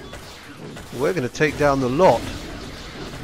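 A big cat roars fiercely.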